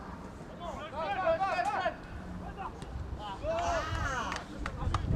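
Young men shout loudly to each other across an open field.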